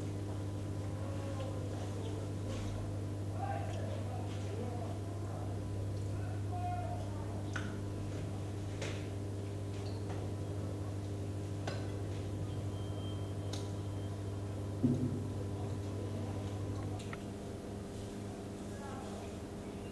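Men talk quietly nearby in a room.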